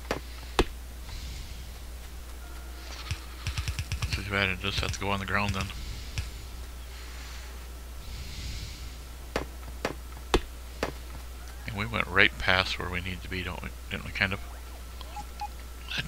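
An axe chops at wood with short knocks.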